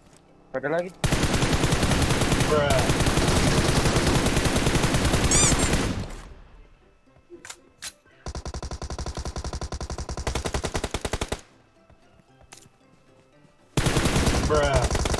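Rapid gunfire rattles in long bursts.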